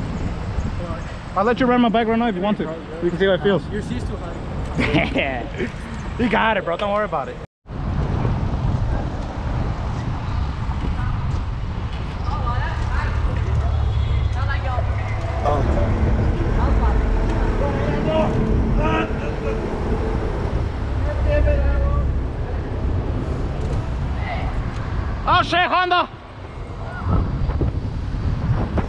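Wind rushes and buffets loudly outdoors as a bicycle rides along.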